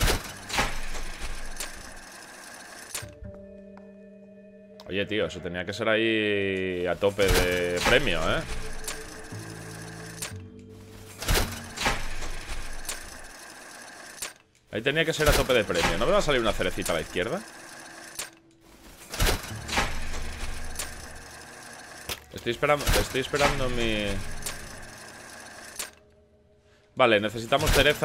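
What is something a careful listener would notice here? Slot machine reels whir and click to a stop.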